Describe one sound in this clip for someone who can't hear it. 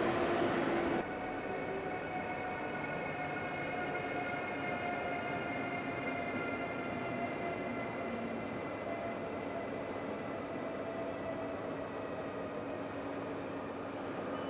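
An electric locomotive whines as it hauls passenger coaches past.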